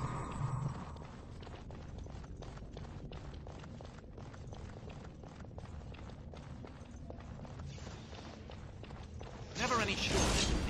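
Footsteps crunch steadily over rough ground.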